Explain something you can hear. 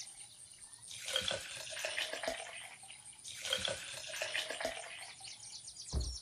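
Liquid pours and glugs from a fuel canister.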